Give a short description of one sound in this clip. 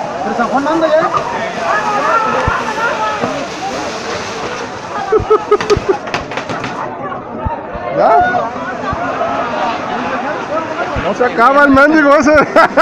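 Fireworks hiss as they spray sparks.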